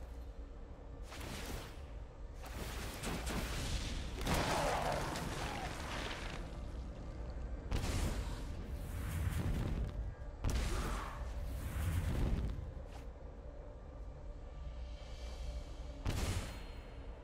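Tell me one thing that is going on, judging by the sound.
Game cards whoosh and shimmer with magical effects.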